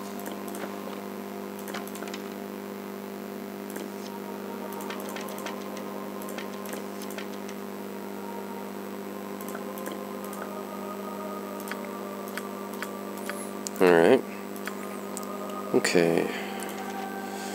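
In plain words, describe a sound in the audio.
Short soft clicks sound as items are picked up and dropped.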